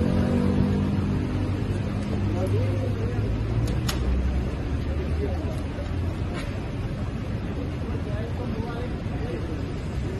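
Men tear cardboard away from a window.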